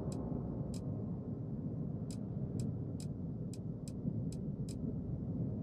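Soft interface clicks tick as a menu selection moves.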